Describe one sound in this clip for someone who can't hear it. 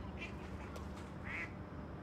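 A fishing lure splashes into calm water.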